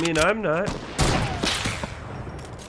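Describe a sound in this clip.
A gun fires a few sharp shots.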